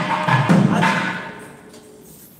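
A man's voice sounds loudly close by.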